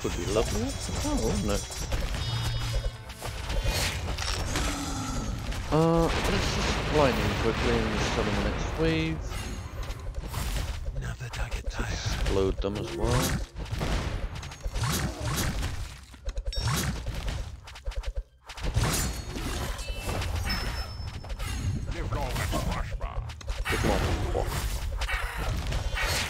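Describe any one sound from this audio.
Game battle sounds clash and zap throughout.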